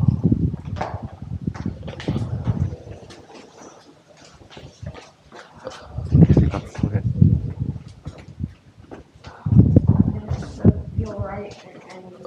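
Footsteps tap and shuffle down concrete stairs.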